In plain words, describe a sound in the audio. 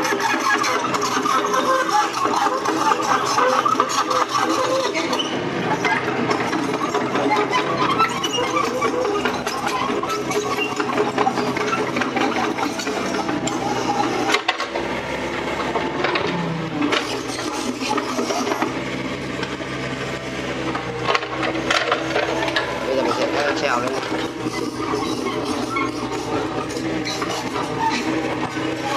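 An excavator's hydraulics whine as its arm moves.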